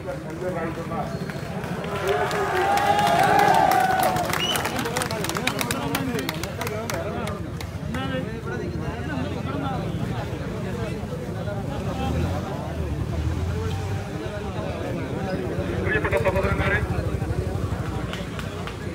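A man speaks into a microphone to a crowd, talking with animation.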